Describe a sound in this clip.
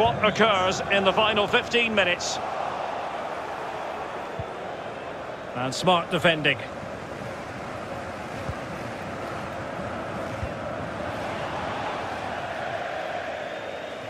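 A large stadium crowd murmurs and roars.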